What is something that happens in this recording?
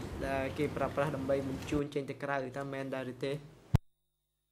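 A young woman speaks calmly into a microphone.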